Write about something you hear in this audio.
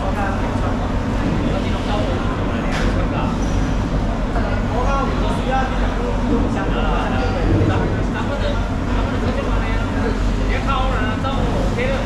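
A large fish slab is dragged across a wooden board.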